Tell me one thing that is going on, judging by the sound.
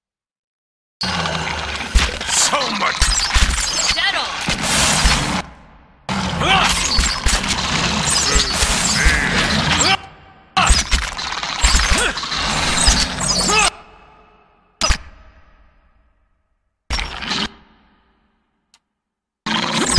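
Swords clash and strike in a fierce battle.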